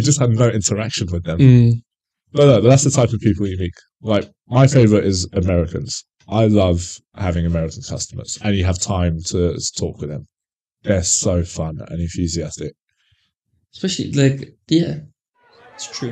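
A second man answers calmly into a microphone close by.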